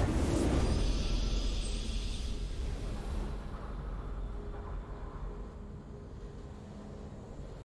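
A triumphant game fanfare swells and slowly fades.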